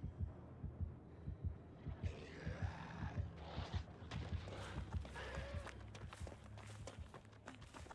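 A heartbeat thumps heavily and steadily.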